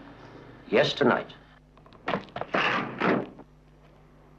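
A man speaks calmly into a telephone.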